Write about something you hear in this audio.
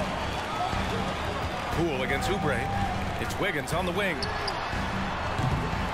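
A basketball bounces on the court as a player dribbles.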